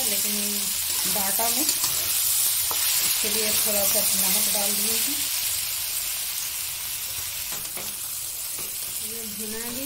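Vegetables sizzle in hot oil.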